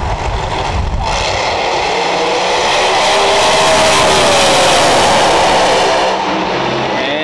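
Drag racing cars roar loudly as they launch and speed away.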